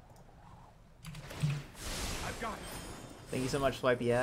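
A shimmering magical whoosh plays as a spell is cast.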